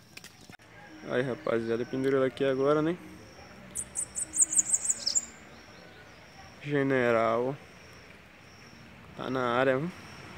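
A caged bird sings loud, whistling phrases outdoors.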